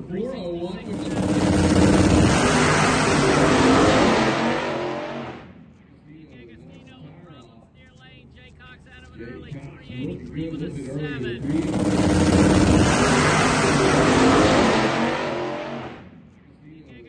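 A pro mod drag racing car launches at full throttle and roars down the strip.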